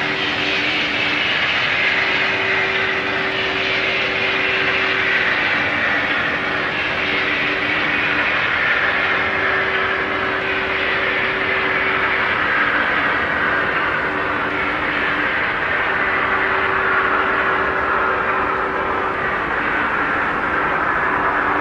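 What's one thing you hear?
A train rumbles along rails at speed, its motor whine slowly falling in pitch as it slows.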